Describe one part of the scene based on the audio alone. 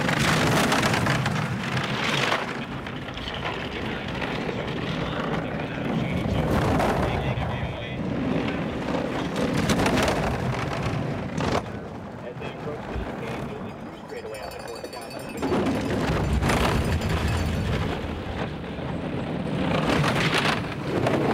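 A bobsled rumbles and roars as it speeds down an icy track.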